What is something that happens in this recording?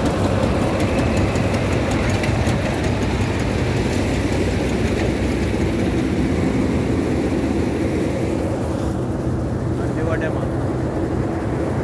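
A harvester engine roars steadily close by.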